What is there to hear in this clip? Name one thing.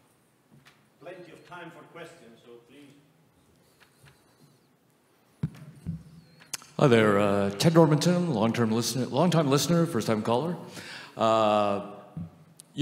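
A man speaks into a microphone in a large hall, in a calm voice.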